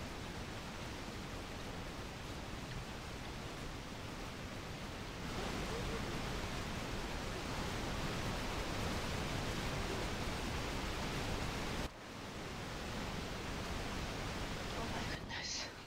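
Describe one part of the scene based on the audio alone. Electric lightning crackles and zaps steadily.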